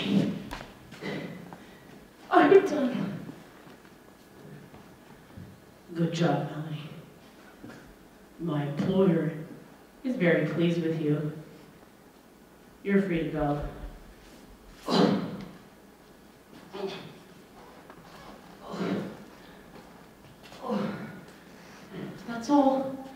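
A young woman sings expressively into a microphone in bursts, heard through loudspeakers in a reverberant room.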